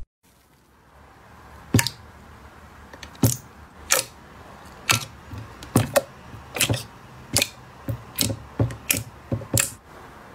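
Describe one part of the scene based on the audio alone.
Fingers press and poke soft jelly in squelching clicks.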